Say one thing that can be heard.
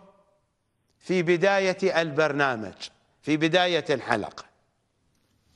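An older man speaks calmly and clearly into a close microphone.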